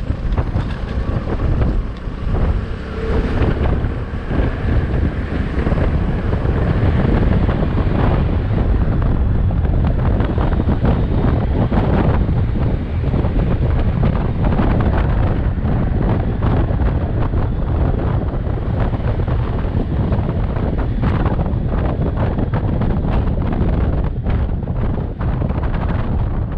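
Wind rushes loudly past a rider.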